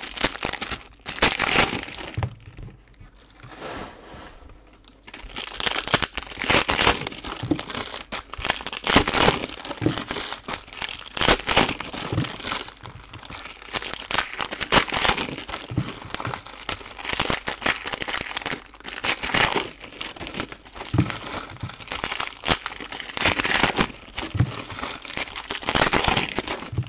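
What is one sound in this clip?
Plastic wrappers crinkle and rustle close by.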